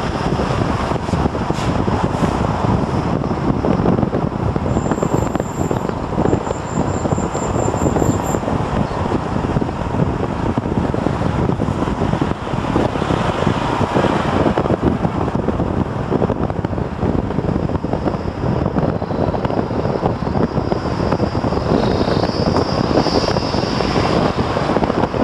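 Wind roars loudly past an open window of a moving car.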